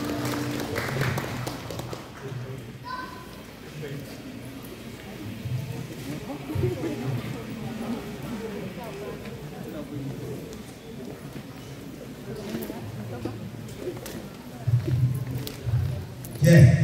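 People chat in a large echoing hall.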